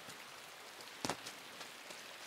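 A loud thud lands on the ground.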